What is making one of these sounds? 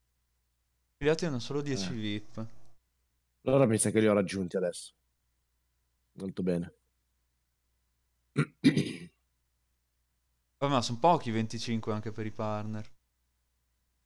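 A young man talks casually and close into a headset microphone, in short bursts with pauses.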